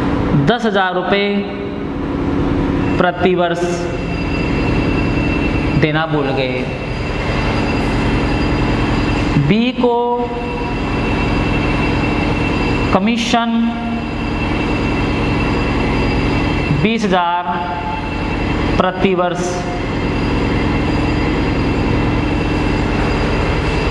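A man speaks steadily, as if teaching.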